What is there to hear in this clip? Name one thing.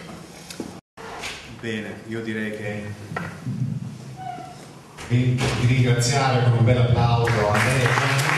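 A middle-aged man talks into a microphone, heard through a loudspeaker.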